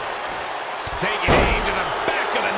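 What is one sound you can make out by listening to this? A heavy thud sounds as a body slams onto a wrestling ring.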